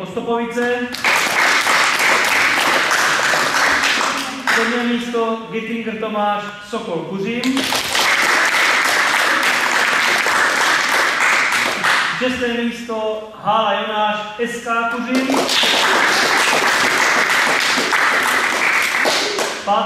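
A group of children clap their hands loudly in bursts.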